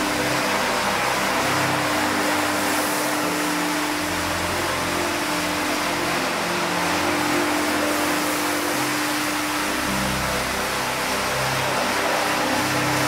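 A rotary floor scrubbing machine hums and whirs as its brush scrubs a wet, soapy rug.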